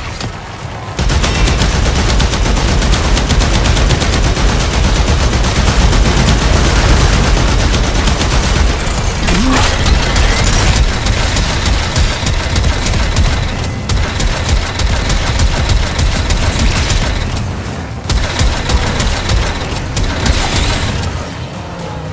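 Rapid gunfire rattles without a break.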